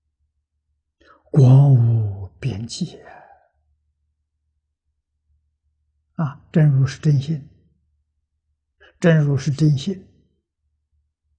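An elderly man speaks slowly and calmly into a close microphone, with long pauses.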